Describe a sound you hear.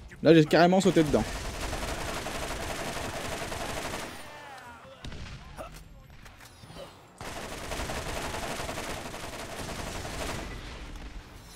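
An electric weapon crackles and hums.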